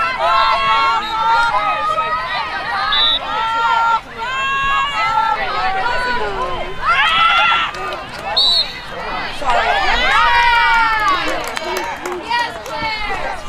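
Many young women shout and call out to each other outdoors.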